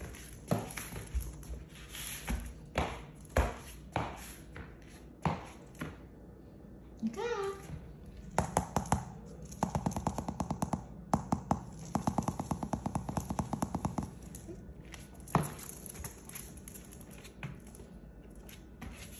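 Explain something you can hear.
Small paws patter and tap quickly on a hard floor.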